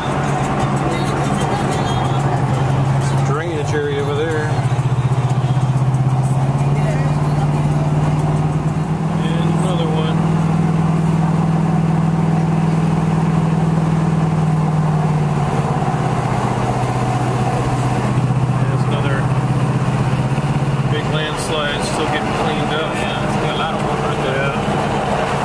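A car engine hums steadily from inside the car, its pitch rising and falling with the driving.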